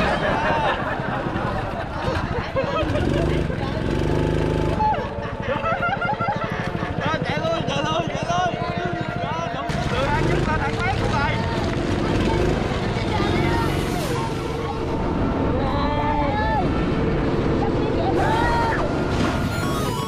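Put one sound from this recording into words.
A go-kart engine buzzes steadily at close range.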